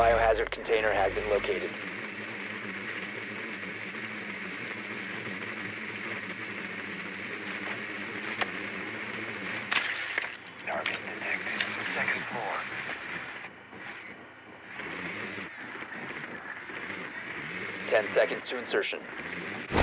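A small motor whirs steadily as a little drone rolls across a hard floor.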